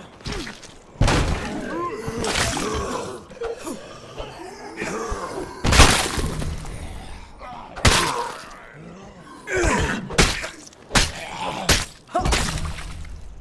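Heavy blows thud and smack during a fight.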